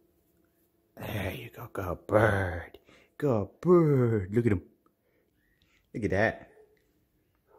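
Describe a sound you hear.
A young cockatiel whistles.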